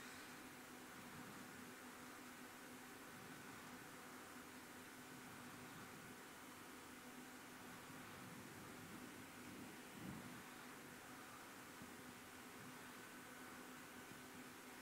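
A furnace roars steadily with a low hum.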